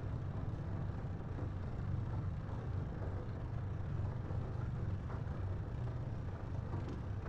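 An aircraft engine hums steadily with a deep, low drone.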